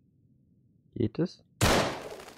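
A pistol fires a few sharp shots.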